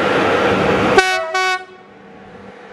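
A locomotive sounds a loud, short horn blast.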